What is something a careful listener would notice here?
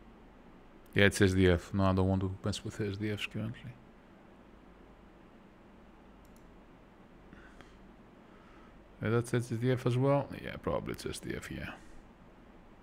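A man speaks calmly and briefly into a close microphone.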